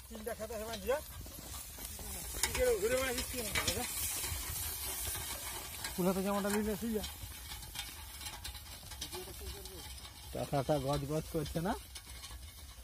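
A man calls out loudly to bullocks outdoors.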